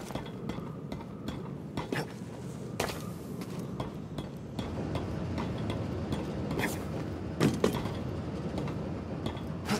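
Hands grab and scrape along a rock ledge.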